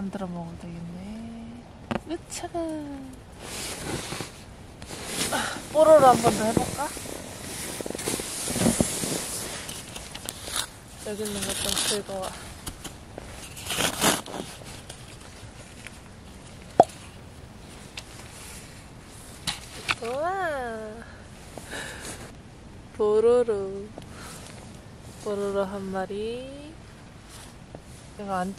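A young woman speaks softly and playfully close by.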